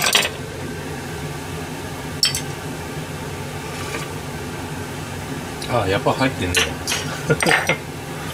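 Pots of food simmer and bubble softly.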